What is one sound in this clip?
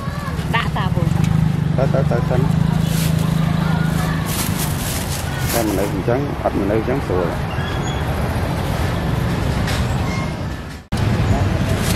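Plastic bags rustle and crinkle.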